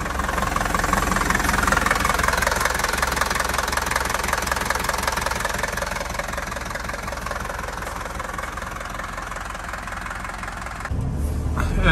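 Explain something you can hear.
An engine idles with a steady rumble.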